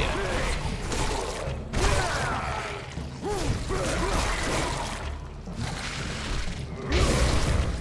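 Blades slash and strike with sharp hits.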